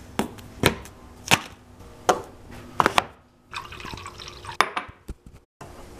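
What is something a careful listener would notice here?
Objects knock against a countertop.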